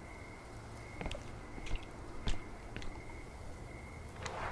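Footsteps tap on a wet stone path.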